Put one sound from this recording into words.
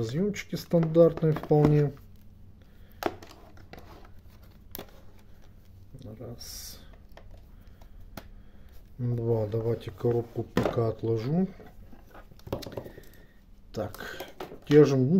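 Plastic test leads rustle and tap against a multimeter.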